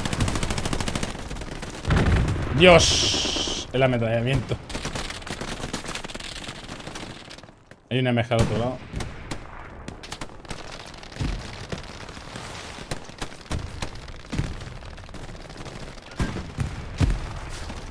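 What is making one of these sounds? Gunfire and explosions crack and boom.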